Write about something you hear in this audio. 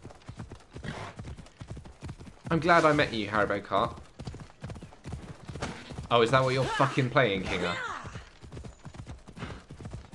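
A horse's hooves thud as it gallops over grass.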